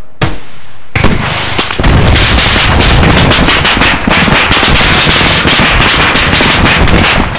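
A loud explosion booms and roars on with crackling, rumbling noise.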